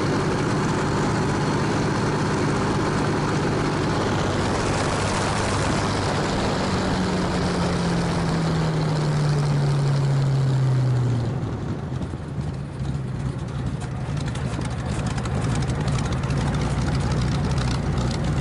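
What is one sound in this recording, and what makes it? A propeller engine drones loudly and steadily, its pitch slowly falling before easing off.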